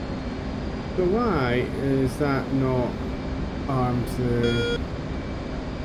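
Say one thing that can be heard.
A young man speaks with animation through a headset microphone.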